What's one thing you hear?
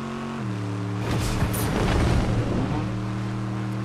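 Water splashes roughly under a vehicle.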